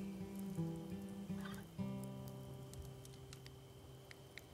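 A guitar is strummed close by.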